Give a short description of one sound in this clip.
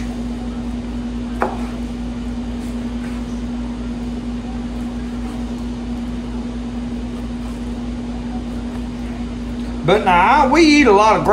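A knife slices through meat on a wooden board.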